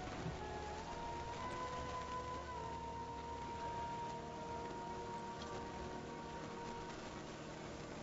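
Soft game music with long held tones plays and fades.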